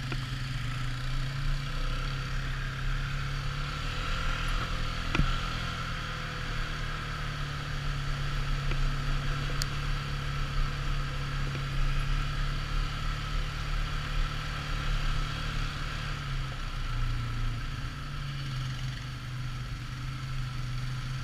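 Tyres crunch over a gravel dirt track.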